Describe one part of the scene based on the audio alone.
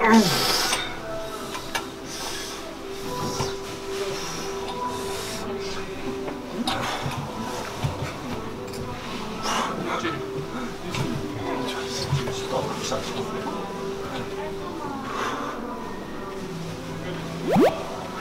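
Clothes hangers scrape and clack along a metal rail.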